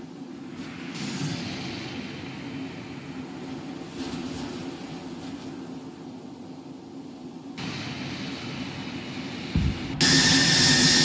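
A jet engine roars as an aircraft flies overhead.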